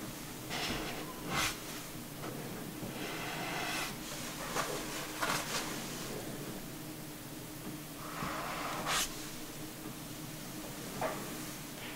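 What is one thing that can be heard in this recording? A towel rubs softly against wet hair.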